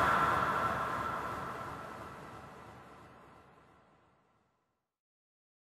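Flames roar and slowly fade away.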